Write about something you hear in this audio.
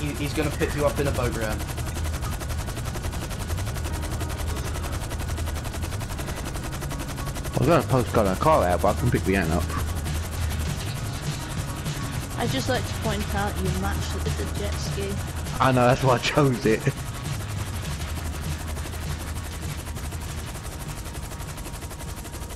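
A helicopter's rotors thump steadily overhead.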